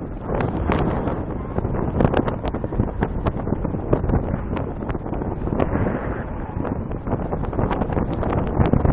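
Strong wind rushes and buffets loudly against the microphone throughout.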